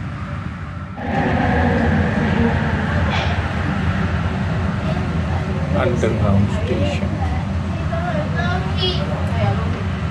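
A train's rumble grows louder and echoes as it enters a covered station.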